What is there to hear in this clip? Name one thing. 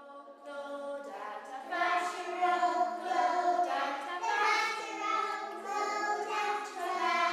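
A group of young children sing together with a woman.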